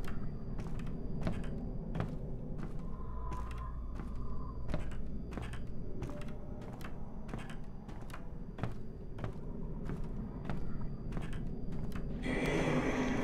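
Slow, even footsteps tread on a hard floor.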